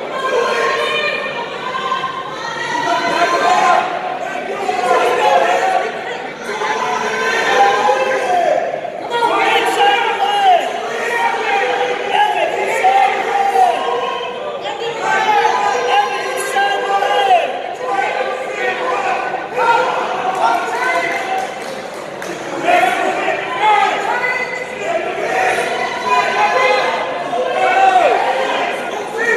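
A man shouts instructions from nearby.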